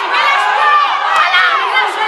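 A young woman shouts out excitedly.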